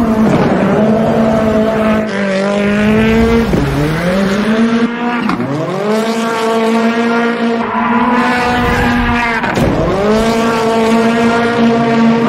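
A car engine revs hard and whines up and down in pitch.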